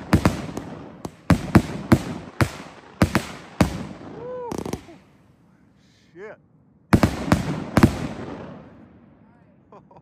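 Fireworks bang loudly in quick bursts, echoing outdoors.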